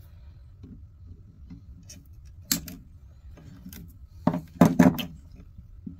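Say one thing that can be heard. Pliers snip through wires.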